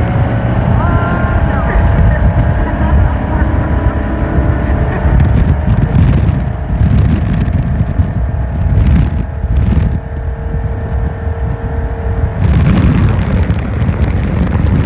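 A motorboat engine roars steadily at speed.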